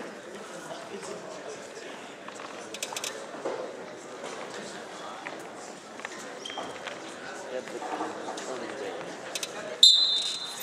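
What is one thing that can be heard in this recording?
Feet thud and scuff on a wrestling mat.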